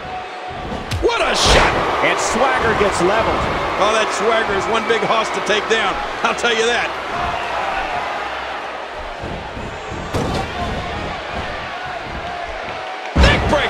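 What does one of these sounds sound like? Heavy thuds ring out as bodies slam onto a wrestling mat.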